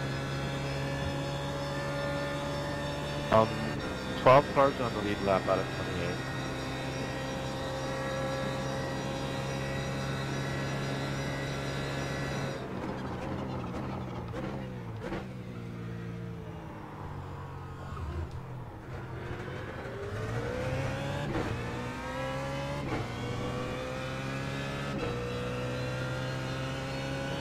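A race car engine roars at high revs, drops as the car brakes, then climbs again through the gears.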